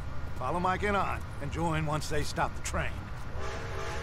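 A man speaks firmly, giving orders.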